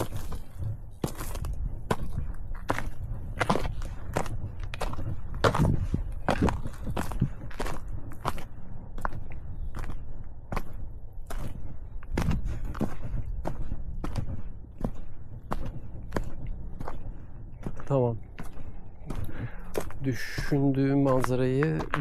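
Footsteps crunch on a dry, stony dirt path.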